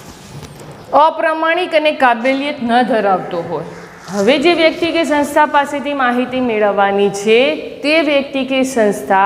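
A woman speaks clearly and calmly, close by.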